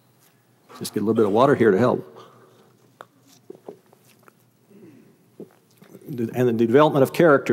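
An elderly man speaks with animation through a microphone in a large hall.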